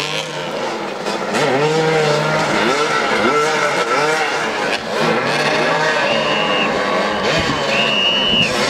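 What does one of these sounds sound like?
Motorcycle engines rev and whine up and down close by.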